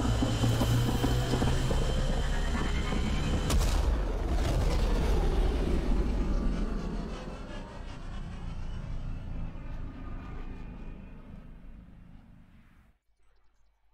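A spaceship engine roars loudly and fades away into the distance.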